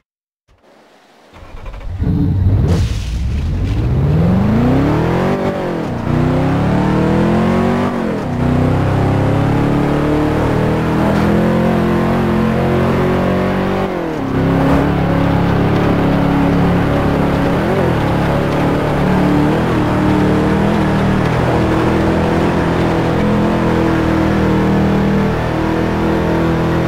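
Heavy rain pours on a car's roof and windscreen.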